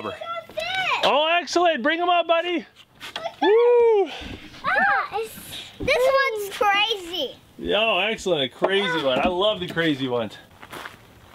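A young child talks excitedly nearby.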